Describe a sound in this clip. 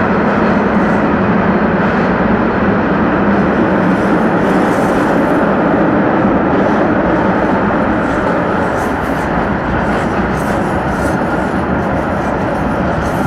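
A vehicle drives steadily through a tunnel, its engine and tyres roaring with a loud echo.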